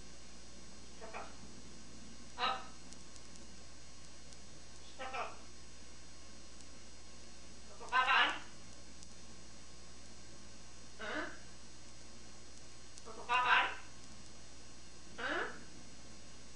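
A parrot squawks in short, harsh calls every few seconds.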